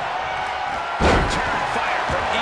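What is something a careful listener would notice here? A body slams down hard onto a wrestling ring mat with a heavy thud.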